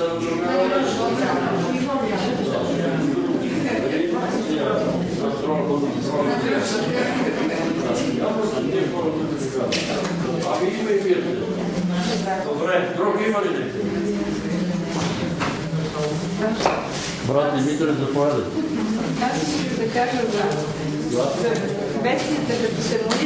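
An elderly man speaks with animation in a room with a slight echo.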